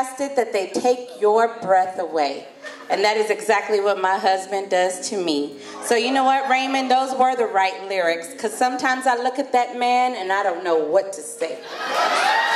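A woman sings through a microphone and loudspeakers in a large echoing hall.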